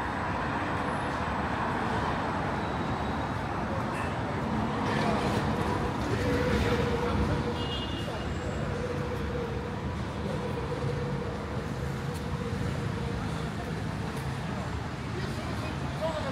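Steady city traffic rumbles outdoors.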